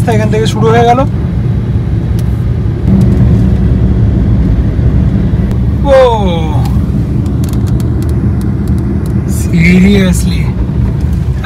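A car engine hums and tyres rumble on the road.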